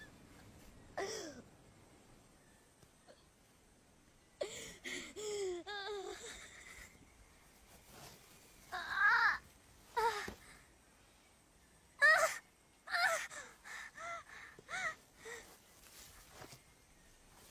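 A young woman groans and cries out in pain close by.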